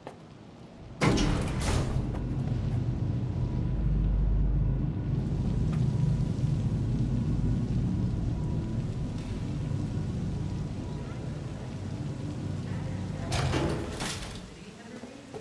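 An elevator hums low and steady as it moves.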